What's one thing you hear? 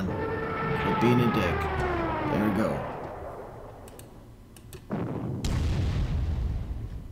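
Cannons fire with loud booming blasts.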